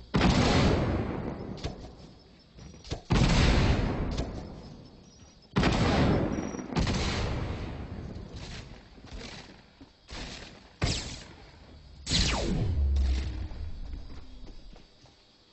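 Loud gunshots boom and ring out.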